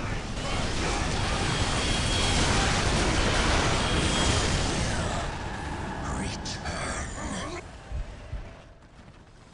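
Explosions and gunfire rumble and crackle loudly.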